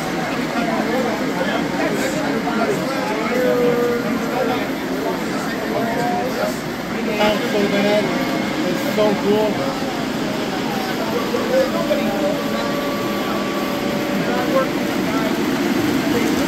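Model trains rumble and clatter along the tracks.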